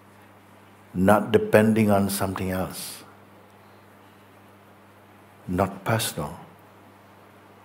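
An elderly man speaks calmly and slowly, close to a microphone, with long pauses.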